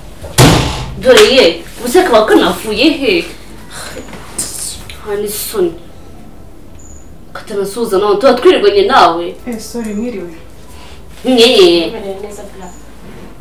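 A young woman speaks loudly and with emotion, close by.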